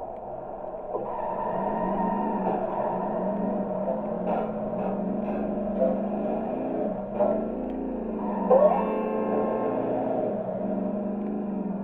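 A cartoon car engine hums steadily while driving.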